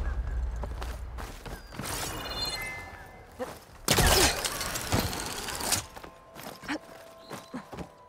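Wood knocks and creaks during a climb.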